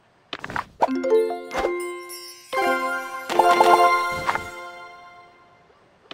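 A bright musical jingle rings out.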